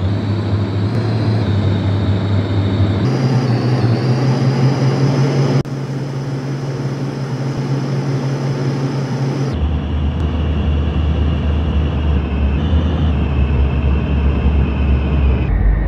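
A bus engine hums steadily, changing pitch as it shifts gear.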